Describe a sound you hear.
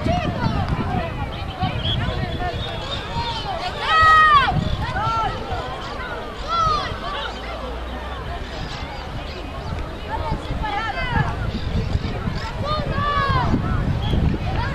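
Teenage boys shout and call out to each other outdoors.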